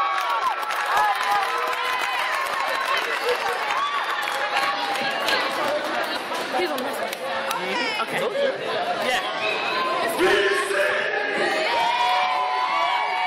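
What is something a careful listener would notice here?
Young men shout excitedly close by.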